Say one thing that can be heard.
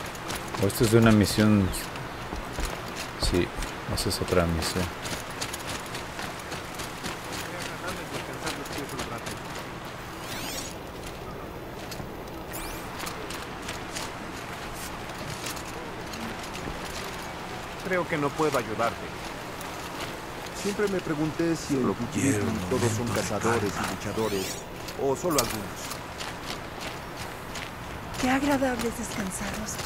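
Footsteps patter quickly on wood, dirt and stone.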